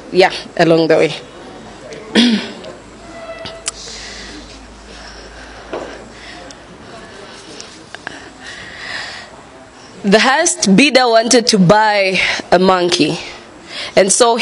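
A young woman speaks with feeling into a microphone, pausing between phrases.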